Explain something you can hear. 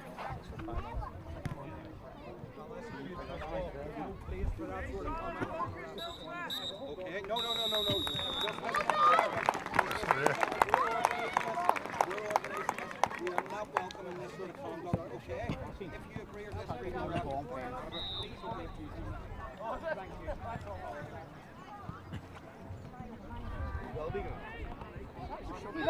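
A crowd of spectators chatters and calls out close by outdoors.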